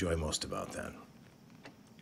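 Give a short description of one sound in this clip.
A man speaks in a low, quiet voice.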